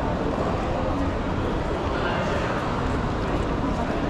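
Footsteps echo across a hard floor.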